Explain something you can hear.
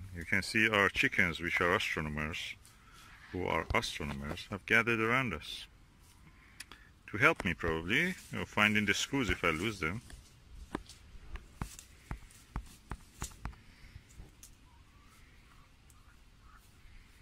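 Hens peck and scratch in dry grass.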